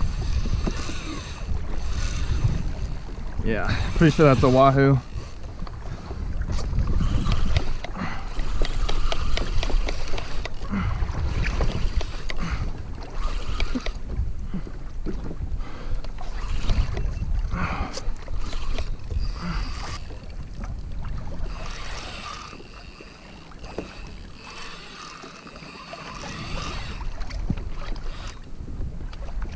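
Wind buffets loudly outdoors on open water.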